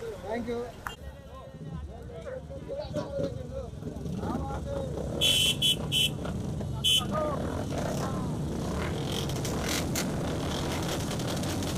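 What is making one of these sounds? Motorcycle engines idle and rumble nearby.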